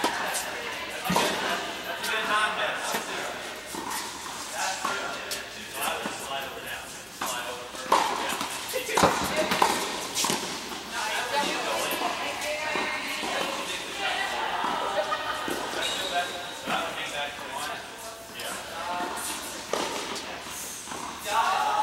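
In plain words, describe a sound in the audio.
Tennis rackets strike balls with sharp pops in a large echoing indoor hall.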